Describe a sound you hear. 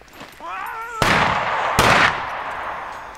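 A loud gunshot rings out.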